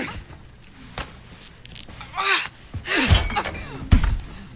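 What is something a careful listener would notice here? Heavy thumps sound as two people struggle.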